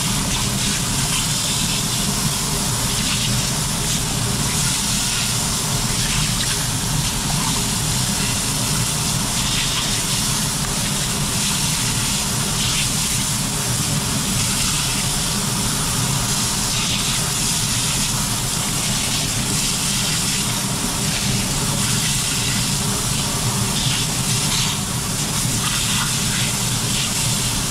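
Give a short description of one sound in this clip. A high-pressure water nozzle sprays with a steady hiss.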